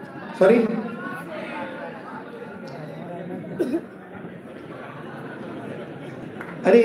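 Several men and women chatter nearby in a large hall.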